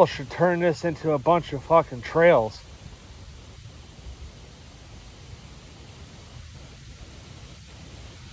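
Wind rustles leaves outdoors.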